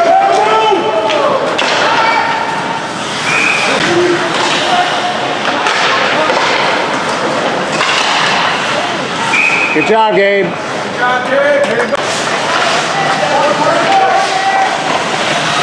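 Hockey skates scrape and carve across the ice in an echoing indoor rink.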